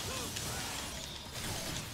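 A fiery blast bursts and crackles.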